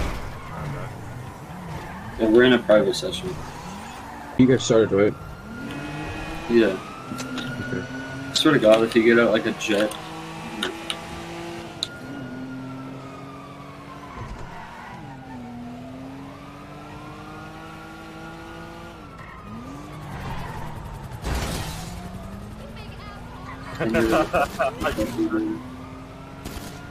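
A car engine revs up and down as the car accelerates.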